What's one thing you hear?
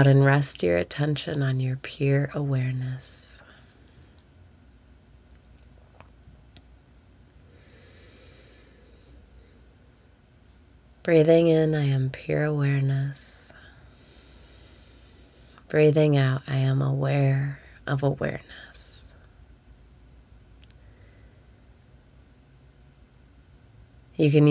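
A young woman speaks calmly and close to a microphone, in short bursts with long pauses.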